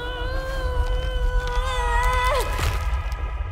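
A young woman cries out in a long, wavering wail that breaks off sharply.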